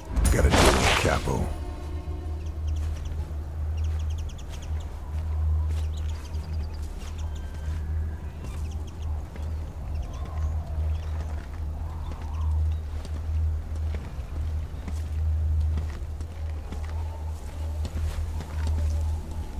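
Footsteps crunch softly on gravel and cobblestones.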